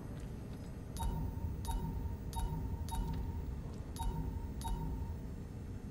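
Short electronic beeps chime one after another.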